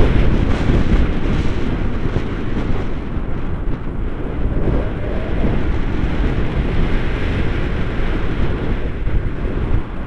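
Strong wind rushes and buffets against a microphone outdoors.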